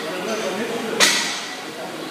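Metal dumbbells clink together once.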